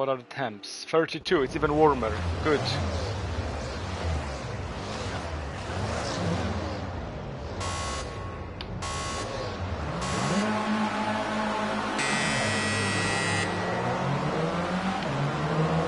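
Racing car engines rev and idle loudly on a starting grid.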